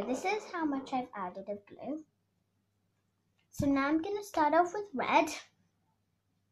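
A young girl talks close by, in short bursts.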